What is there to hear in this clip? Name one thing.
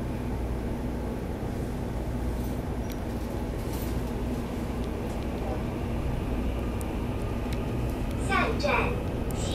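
An electric multiple-unit train rumbles along the track, heard from inside the carriage.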